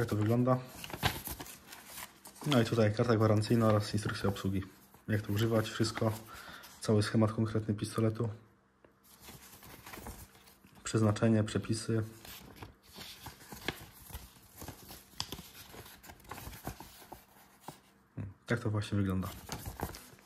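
Paper rustles as pages are handled and turned.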